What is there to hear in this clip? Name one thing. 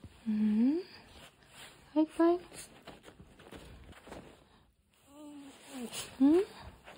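A small dog whines in short, rising cries close by.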